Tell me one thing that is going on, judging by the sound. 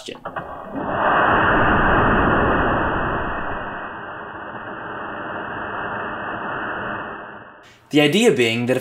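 Flames roar and whoosh in a deep rush.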